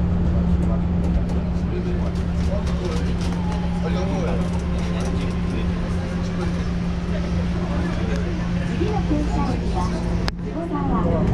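A train hums steadily as it runs along.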